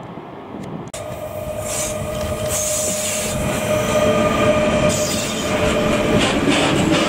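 A freight train rumbles and clatters past close by on the rails.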